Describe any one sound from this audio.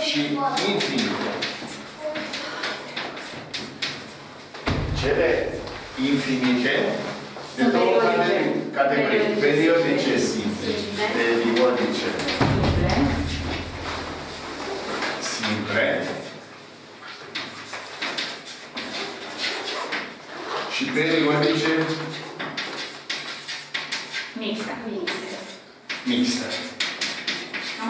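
An elderly man speaks calmly, as if explaining, nearby.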